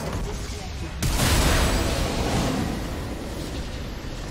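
A loud game explosion booms.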